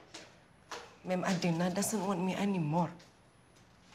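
An older woman speaks firmly, close by.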